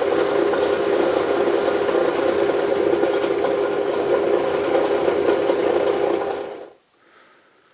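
A lathe hums steadily.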